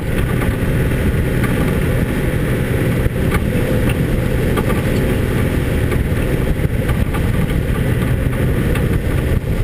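A vehicle engine rumbles steadily as it drives along a rough dirt track.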